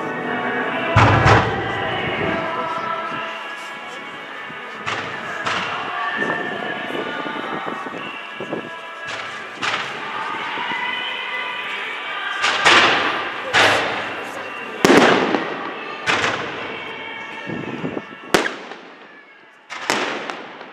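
Fireworks burst with loud bangs outdoors, echoing off buildings.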